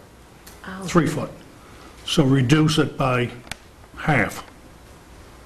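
An elderly man speaks into a microphone in short bursts.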